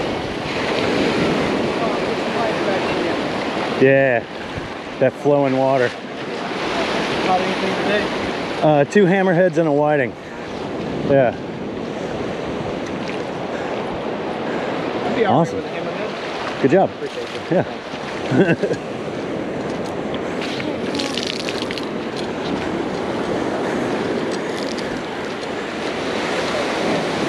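Small waves wash and hiss over the sand.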